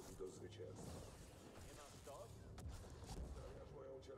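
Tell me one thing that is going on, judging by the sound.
Blaster shots zap in quick bursts.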